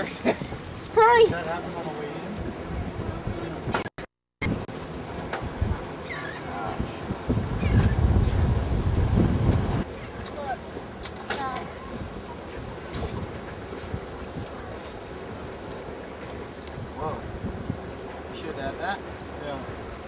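Young men talk and call out with animation close by, outdoors.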